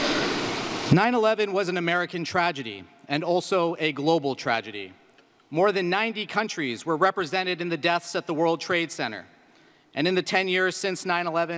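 A man speaks steadily through a loudspeaker in a large echoing hall.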